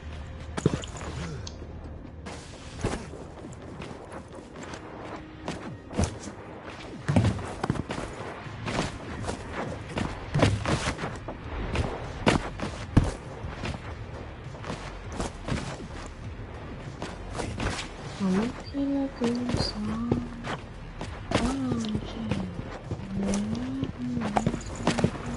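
Sharp thuds sound as a game character leaps and lands.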